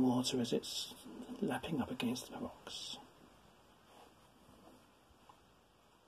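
A brush scrapes and dabs softly on paper.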